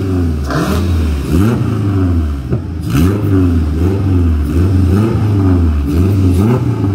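A car engine revs hard again and again, close by.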